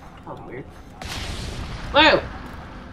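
A crackling magical blast whooshes out.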